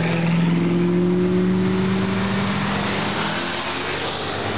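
A sports car engine rumbles loudly as the car drives past close by.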